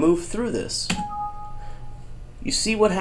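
A computer error chime sounds once.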